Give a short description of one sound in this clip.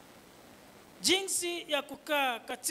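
A man speaks slowly and solemnly into a microphone.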